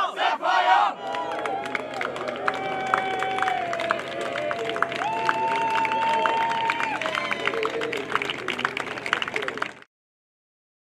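A crowd claps hands rapidly.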